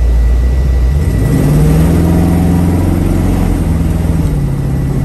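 A large truck roars past in the opposite direction.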